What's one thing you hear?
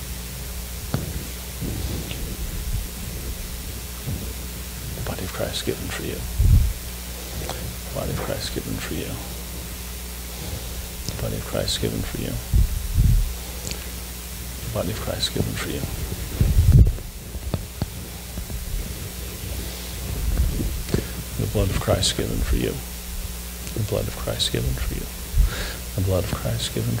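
An elderly man speaks quietly in a large echoing hall.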